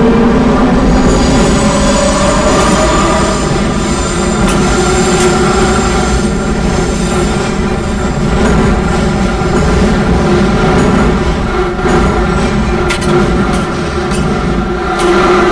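A subway train rumbles and hums steadily through a tunnel.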